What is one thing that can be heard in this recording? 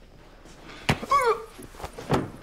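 A young woman cries out sharply.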